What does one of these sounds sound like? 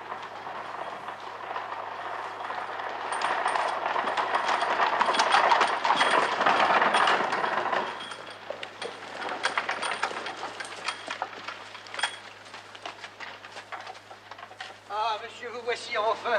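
Horses' hooves clop on the ground.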